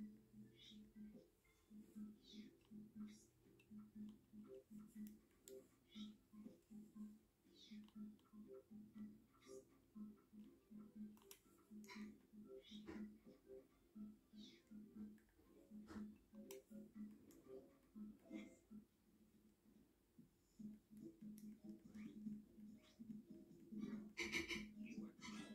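Bouncy video game music plays from a television.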